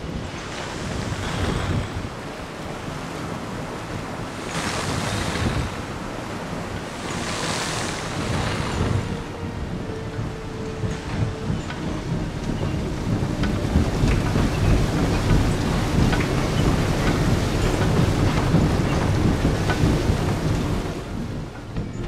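Water rushes and splashes along a ship's hull.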